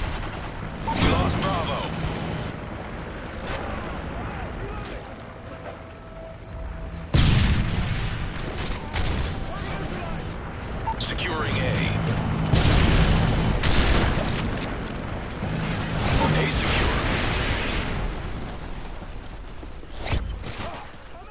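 A gun fires sharp shots.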